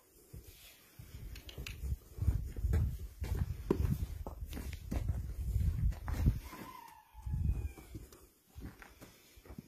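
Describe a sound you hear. A horse breathes and snorts close by.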